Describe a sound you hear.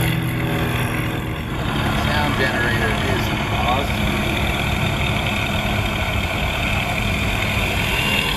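Small wheels rumble over dirt as a model airplane lands and rolls.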